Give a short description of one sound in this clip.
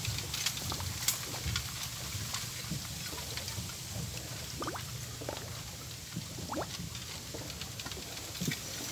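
Hands fiddle with a small object, making faint clicks.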